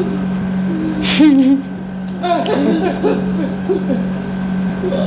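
A young woman laughs softly close to a microphone.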